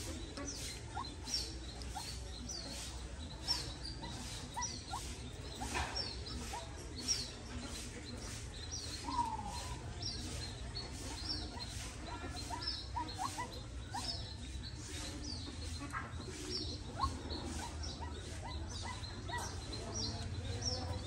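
A small bird chirps repeatedly in short, high calls.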